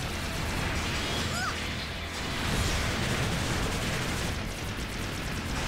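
A robot's thrusters roar as it boosts across the water.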